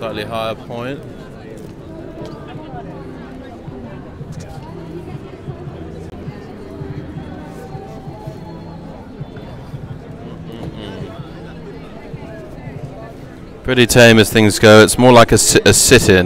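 A crowd murmurs in the distance outdoors.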